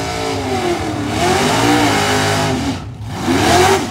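Tyres squeal as a car does a smoky burnout.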